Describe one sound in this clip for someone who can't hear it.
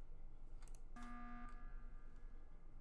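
An alarm blares with a bright buzzing tone.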